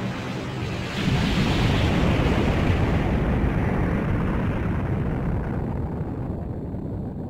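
A deep explosion booms and slowly rumbles away.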